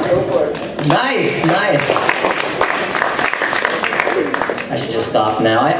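An audience claps and laughs.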